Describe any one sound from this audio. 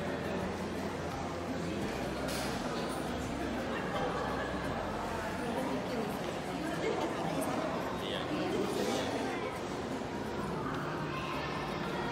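A young woman talks cheerfully close to the microphone.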